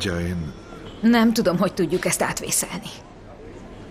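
A woman speaks tensely nearby.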